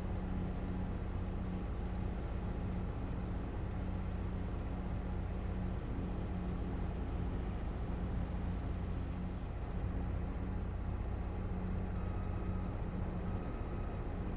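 A combine harvester engine drones steadily and loudly from inside the cab.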